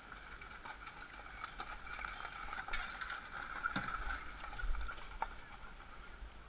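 Wagon wheels rumble and crunch over gravel as the wagon passes close by.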